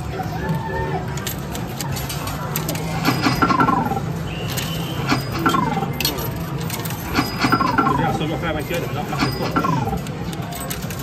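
Coins clink and clatter inside an arcade coin pusher.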